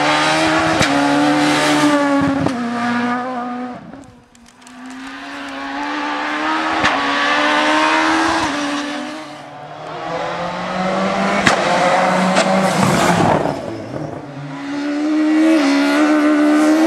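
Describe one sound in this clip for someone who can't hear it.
Gravel and stones spray and clatter under the tyres.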